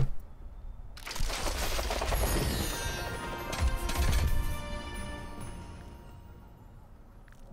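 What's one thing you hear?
A gift box bursts open with a bright, chiming shimmer.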